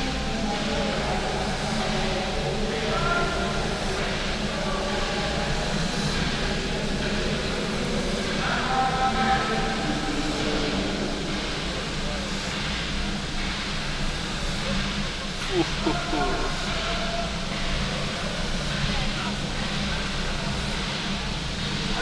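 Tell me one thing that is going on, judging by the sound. A crowd of people chatters in the background.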